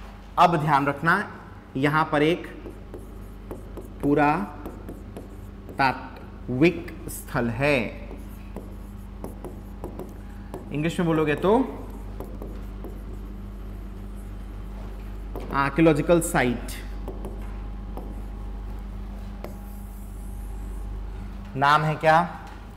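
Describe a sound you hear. A marker squeaks on a board.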